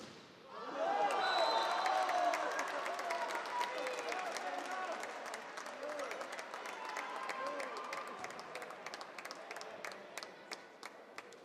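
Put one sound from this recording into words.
A crowd claps rapidly.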